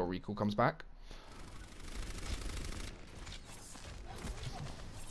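Video game weapons fire and crackle.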